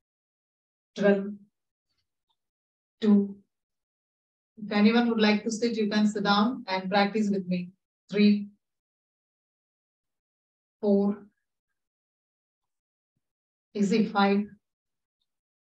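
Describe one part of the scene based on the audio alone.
A woman gives instructions in short bursts over an online call.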